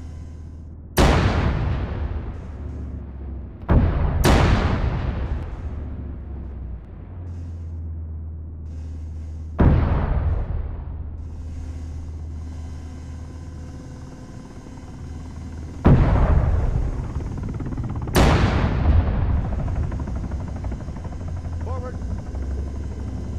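Loud explosions boom and rumble away.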